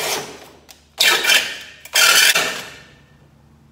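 A metal part clanks on a workbench.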